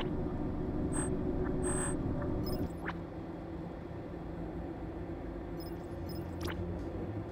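Short electronic interface chimes sound now and then.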